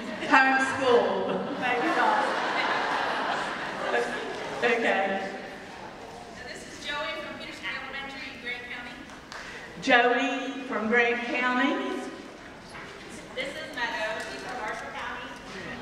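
A man speaks calmly through a microphone and loudspeakers in a large, echoing hall.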